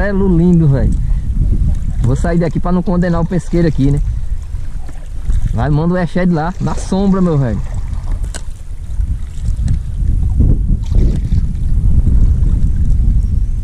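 A paddle splashes through water.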